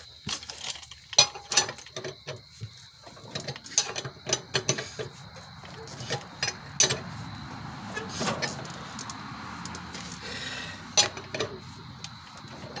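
A wrench clanks and clicks against a wheel's nuts.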